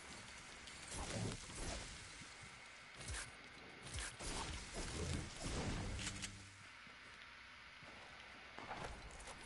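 Footsteps thud quickly across the ground in a video game.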